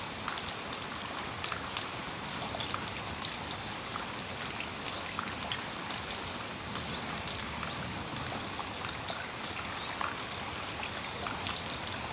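Raindrops drip and patter onto a metal awning.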